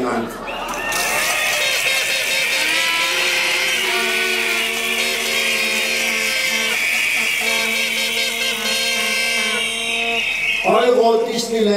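A man sings through a loudspeaker in long, held notes.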